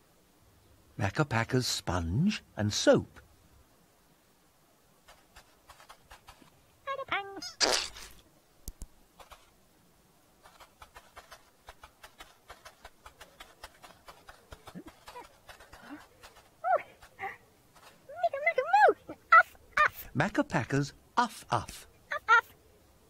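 A small creature babbles in a squeaky, playful voice.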